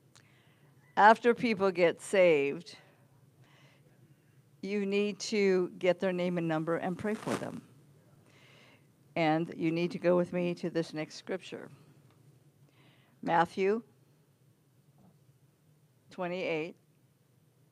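An elderly woman speaks calmly into a microphone, heard through loudspeakers in a large room, in short bursts with pauses.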